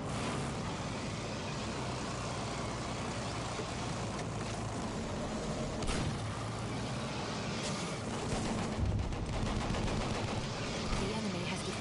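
A flamethrower roars with a steady rushing blast.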